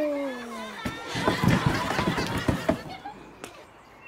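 A man laughs heartily outdoors.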